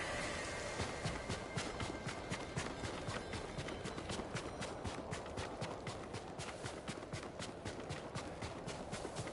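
Footsteps run quickly over sand.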